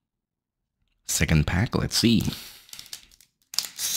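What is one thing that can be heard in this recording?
A foil card pack tears open.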